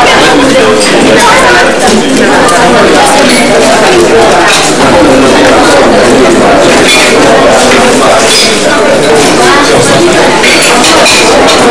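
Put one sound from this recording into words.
A crowd of diners chatters in a busy echoing hall.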